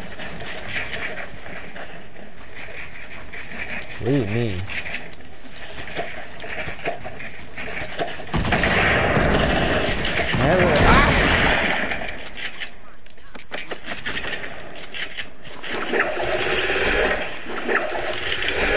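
Game building pieces snap and clatter into place.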